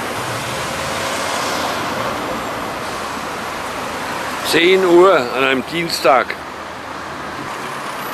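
Traffic hums steadily along a street.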